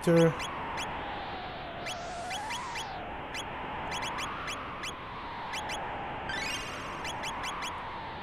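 Short menu beeps click quickly one after another.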